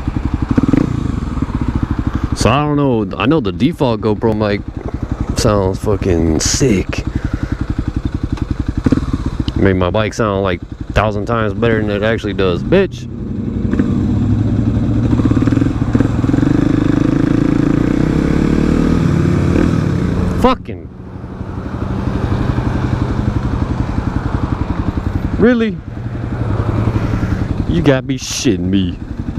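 A motorcycle engine idles and rumbles steadily close by.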